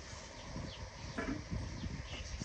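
A metal lid clanks onto a pan.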